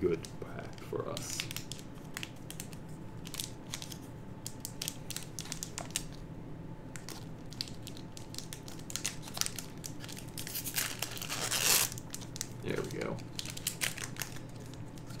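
Playing cards riffle and snap as they are shuffled by hand.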